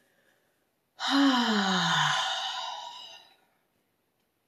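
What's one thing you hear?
A woman breathes out with a long, loud sigh that falls in pitch.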